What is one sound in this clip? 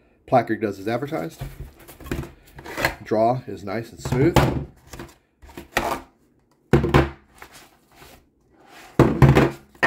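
Plastic rifle magazines slide out of a fabric pouch with a soft scrape.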